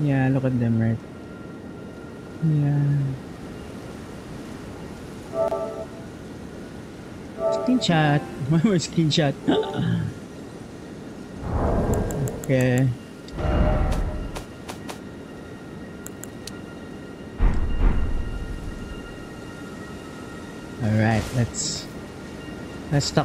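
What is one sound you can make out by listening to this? A young man talks casually into a microphone.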